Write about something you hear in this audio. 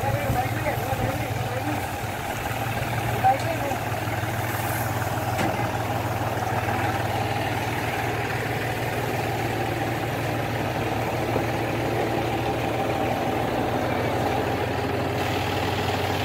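An engine hums steadily nearby.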